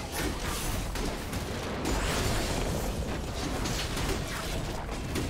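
Fighting sound effects from a video game crackle and whoosh.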